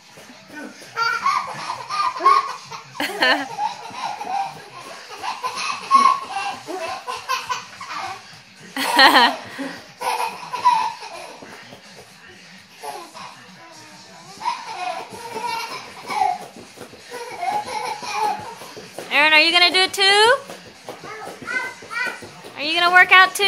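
A baby laughs loudly and squeals close by.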